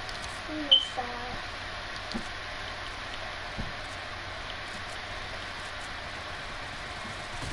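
Footsteps patter through grass.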